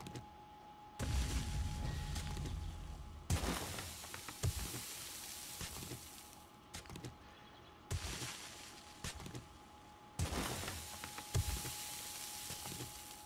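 A shovel digs into gravelly earth with scraping crunches.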